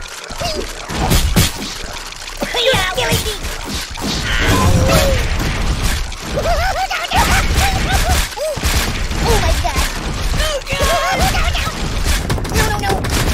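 A monster truck engine rumbles and revs.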